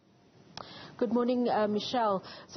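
A young woman speaks into a handheld microphone.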